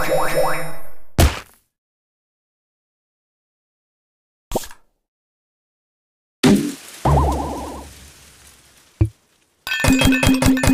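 Short electronic game sound effects play in bursts, with silent gaps between them.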